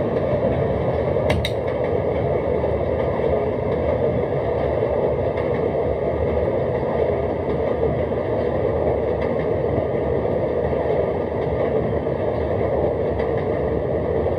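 A train rumbles steadily along rails.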